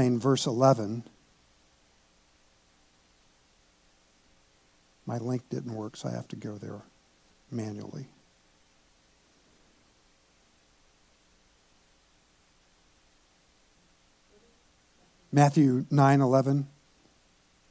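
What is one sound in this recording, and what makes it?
An elderly man speaks calmly through a microphone, with long pauses.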